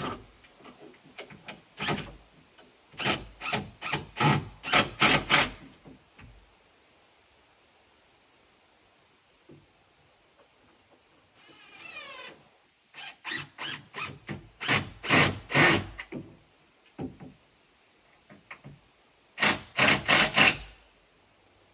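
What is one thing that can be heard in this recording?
A hammer strikes wood in quick bursts of blows.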